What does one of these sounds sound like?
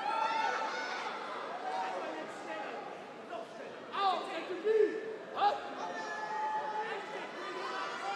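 A man calls out commands loudly.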